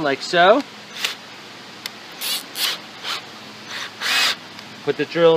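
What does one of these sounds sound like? A drill chuck ratchets and clicks as it is twisted by hand.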